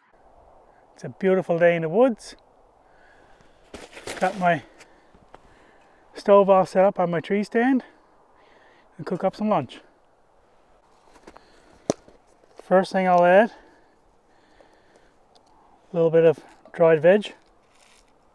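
A middle-aged man talks calmly, close to a microphone, outdoors.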